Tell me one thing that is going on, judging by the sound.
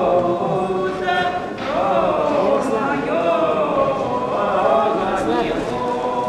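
A woman sings in a long, drawn-out voice.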